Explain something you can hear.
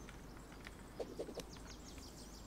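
A hammer knocks on wood a few times.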